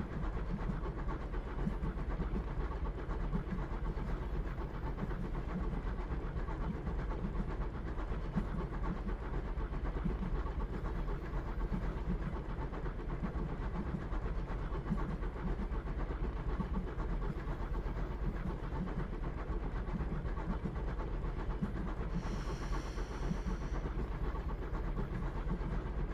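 A train rumbles along rails through a tunnel.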